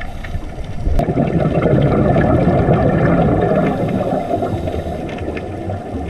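Scuba air bubbles rush and gurgle in bursts underwater.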